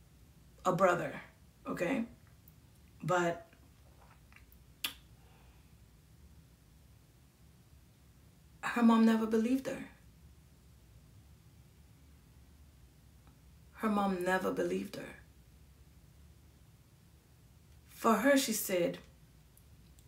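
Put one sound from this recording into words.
A woman speaks close by in short bursts, with long pauses between.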